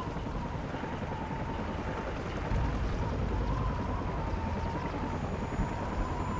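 A helicopter's rotor thrums steadily nearby.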